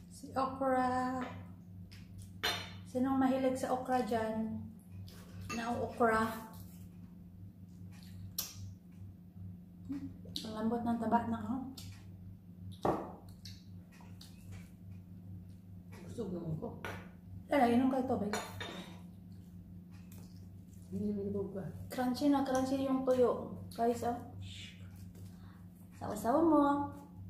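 A woman chews food.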